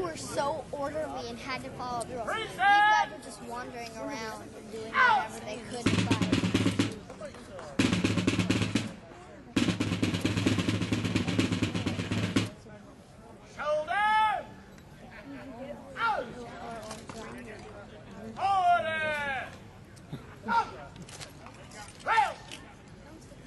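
A man shouts commands outdoors.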